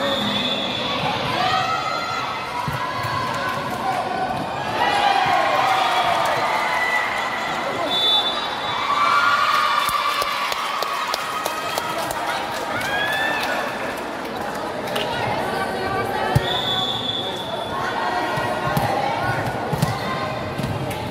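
Young women players shout and call to each other.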